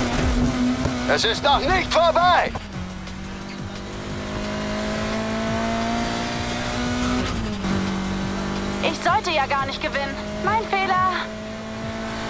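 Tyres screech in long squeals as the car drifts through turns.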